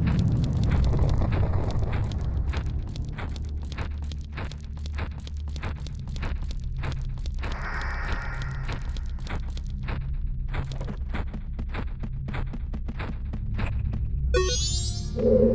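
Game music plays with a steady, plucked beat.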